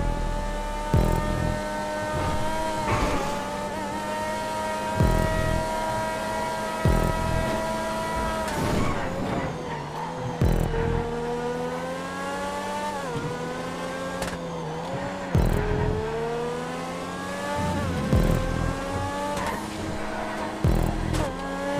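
A racing car's gears shift with sharp cracks.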